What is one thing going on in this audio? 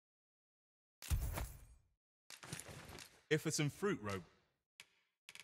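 A game purchase sound plays with a bright jingle.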